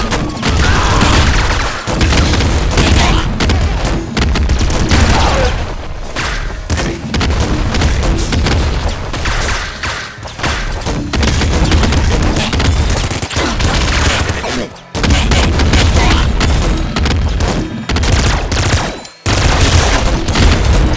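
Explosions boom in a video game.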